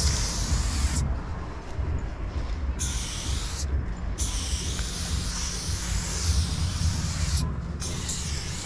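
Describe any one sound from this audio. A spray can hisses in short and long bursts.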